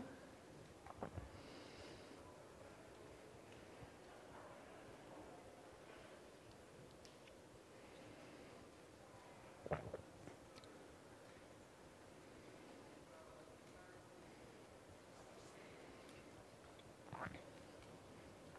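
A woman speaks quietly into a microphone.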